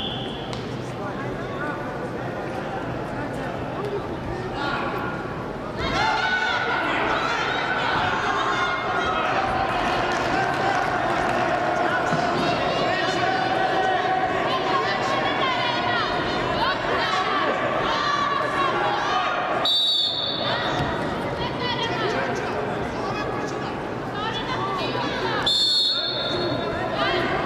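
A crowd cheers and shouts in a large echoing arena.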